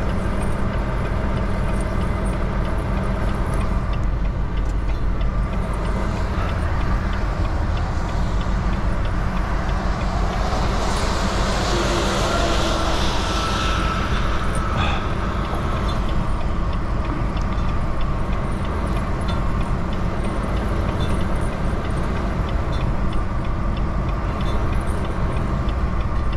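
Tyres hiss on a wet, snowy road.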